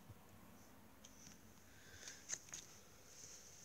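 Stiff stickers rustle and flick in a hand.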